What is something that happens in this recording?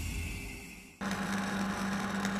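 An electric welder crackles and hisses steadily.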